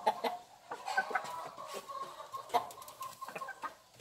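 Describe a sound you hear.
A hen clucks softly nearby.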